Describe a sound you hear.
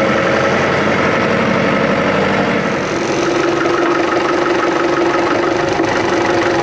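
A tractor engine runs loudly and steadily nearby.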